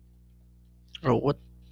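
A young man speaks briefly and loudly into a nearby microphone.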